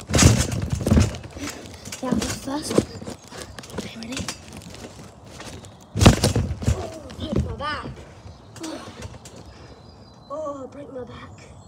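A young boy talks with animation close to the microphone.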